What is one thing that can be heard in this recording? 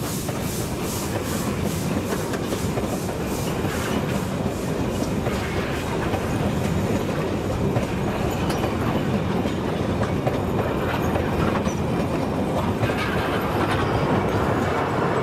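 A passenger train rumbles past very close by.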